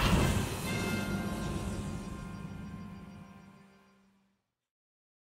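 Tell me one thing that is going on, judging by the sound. A rocket whooshes across the sky and fades away.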